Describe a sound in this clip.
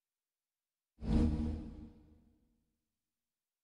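A game menu gives a deep booming thud that quickly fades as its page changes.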